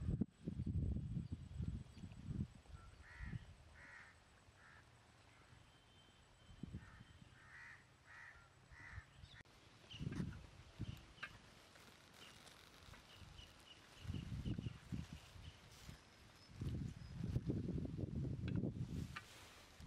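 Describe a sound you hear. Wind gusts blow against the microphone outdoors.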